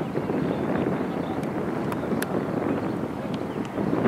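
A football is kicked on a grass pitch, heard from a distance.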